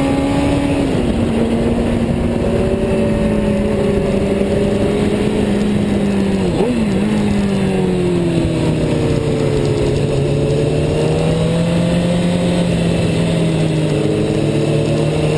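Wind roars past loudly.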